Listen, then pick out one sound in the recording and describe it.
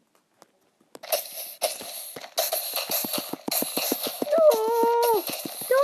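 A sword strikes monsters in quick repeated hits.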